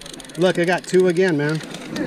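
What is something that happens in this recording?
A fishing reel clicks as it is cranked.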